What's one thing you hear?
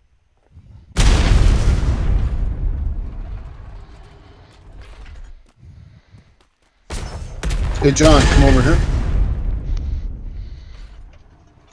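A huge explosion booms and rumbles away slowly.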